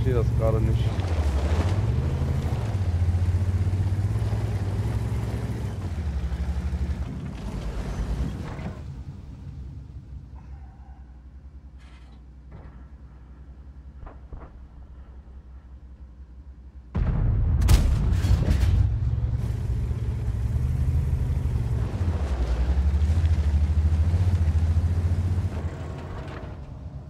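A tank engine rumbles and roars as the tank drives.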